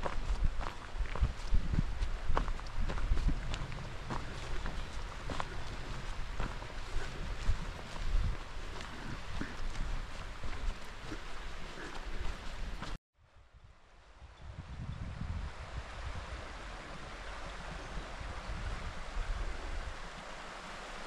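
Wind buffets outdoors with low rumbling gusts.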